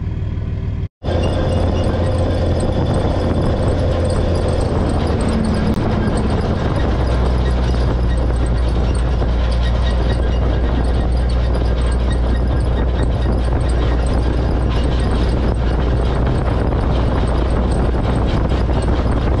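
Wind roars loudly past.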